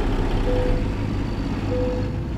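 A truck engine shuts off and its rumble dies away.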